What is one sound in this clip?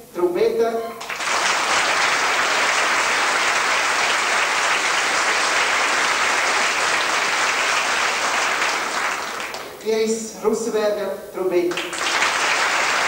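A man speaks through a loudspeaker from the stage.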